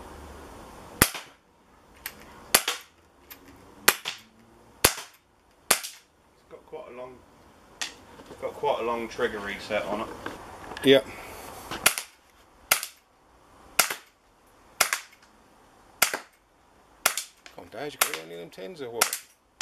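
A pistol fires sharp shots one after another outdoors.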